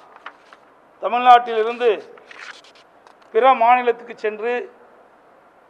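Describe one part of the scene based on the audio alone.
A man speaks calmly into microphones in short phrases.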